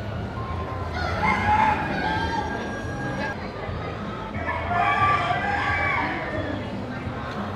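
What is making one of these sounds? Hens cluck softly.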